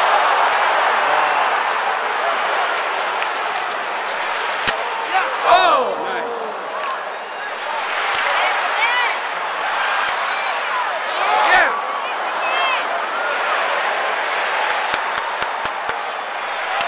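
A large crowd roars and murmurs in a large echoing arena.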